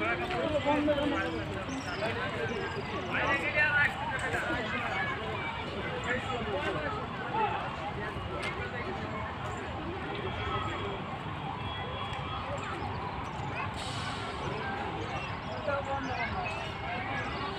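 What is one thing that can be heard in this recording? Many people chatter in the distance outdoors.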